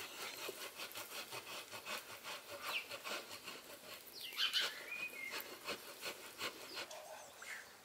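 Cheese is grated on a metal box grater in rhythmic strokes.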